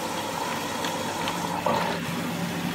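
A washing machine beeps.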